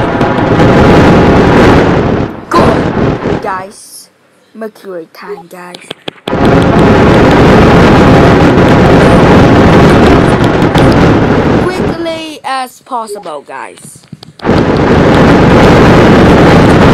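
A huge explosion roars with a deep, rushing rumble.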